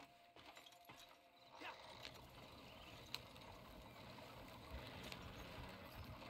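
Wooden wagon wheels creak and rumble over rough ground.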